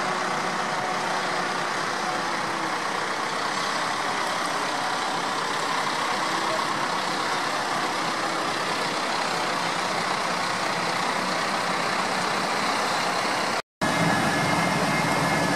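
Tyres swish over a wet road.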